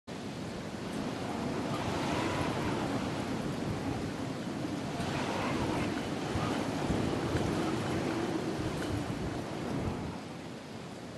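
Wind rushes steadily past a glider descending through the air.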